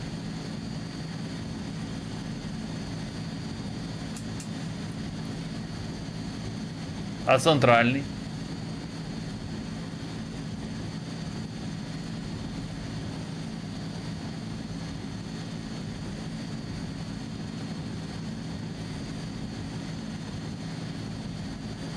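Aircraft engines hum steadily.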